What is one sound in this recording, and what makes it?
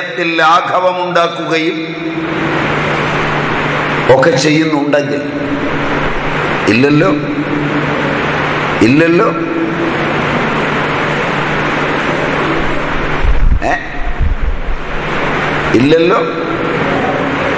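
A man speaks in short bursts with a laughing voice, close to a microphone.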